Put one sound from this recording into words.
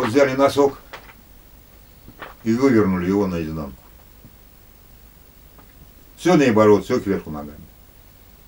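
An elderly man speaks calmly and thoughtfully up close, in short bursts with pauses.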